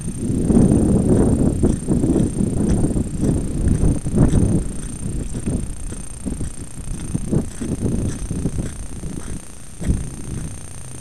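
A vehicle rumbles and jolts over loose stones.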